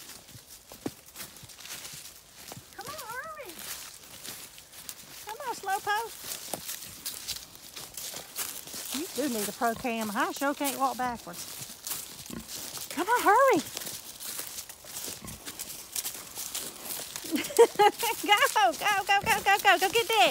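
A pig trots through dry leaves.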